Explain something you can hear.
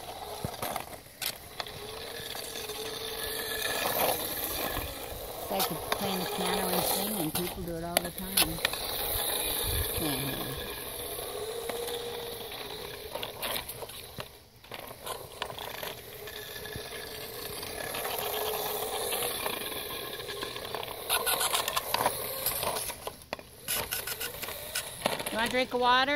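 A small remote-control car whines as it drives across pavement.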